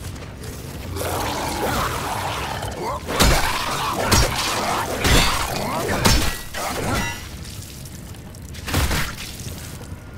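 A creature shrieks and snarls close by.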